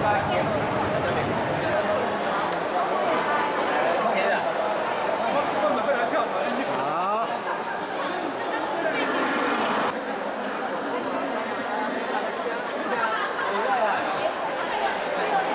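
A group of adults laughs and cheers.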